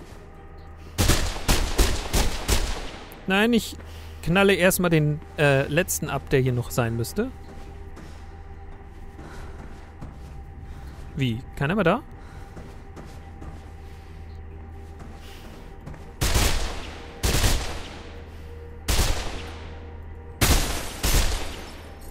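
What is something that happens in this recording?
A rifle fires in loud bursts of shots that echo.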